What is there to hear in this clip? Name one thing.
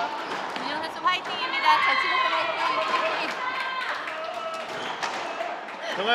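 Several young women laugh and cheer.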